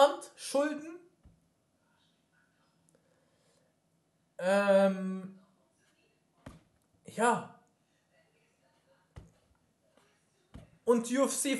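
A young man speaks in short, animated bursts into a microphone close by.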